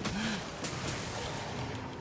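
A fiery blast bursts with a whoosh.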